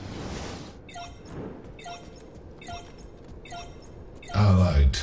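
Short, bright alert chimes ping several times in a row.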